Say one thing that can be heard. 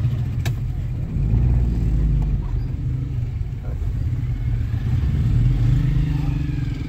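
Small motorcycles ride close by.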